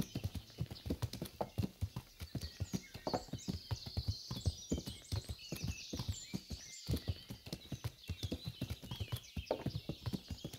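Birds chirp in the trees.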